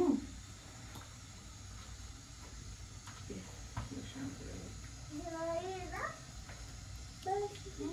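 Hands squish and knead a wet mixture in a bowl.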